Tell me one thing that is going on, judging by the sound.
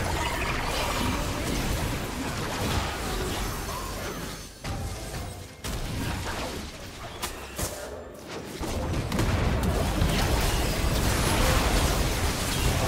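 Magic spells crackle and blast in a game battle.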